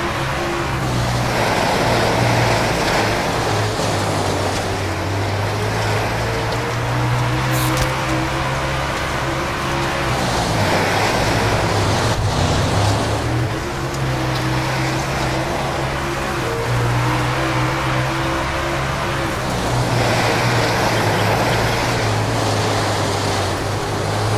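A racing car engine roars loudly, rising and falling in pitch as it speeds up and slows down.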